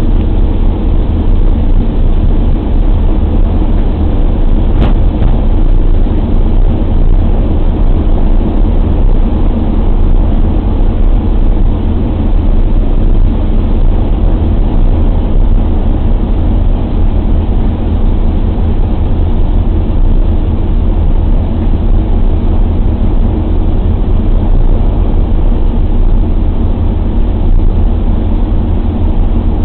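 The four radial engines of a B-24 bomber drone loudly inside the fuselage in flight.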